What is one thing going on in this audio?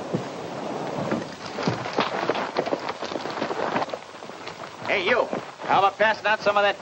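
Horses trot on a dirt road.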